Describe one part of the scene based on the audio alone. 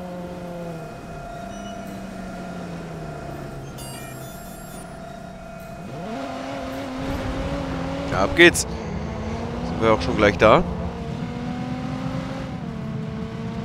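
A car engine hums and revs as the car drives.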